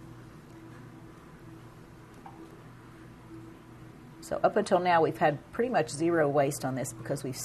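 A spatula scrapes and stirs in a glass cup.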